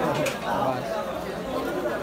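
Men talk in a market crowd.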